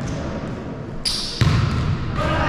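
A volleyball is served with a sharp slap in an echoing gym.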